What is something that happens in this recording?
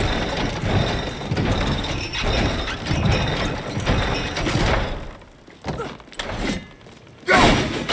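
A wooden cable car rattles along a creaking cable overhead.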